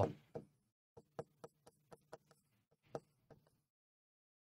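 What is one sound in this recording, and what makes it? A marker squeaks and taps on a whiteboard.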